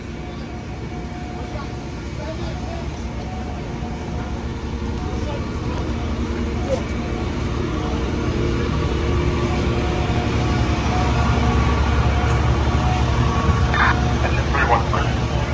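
A fire engine rumbles steadily nearby, growing louder.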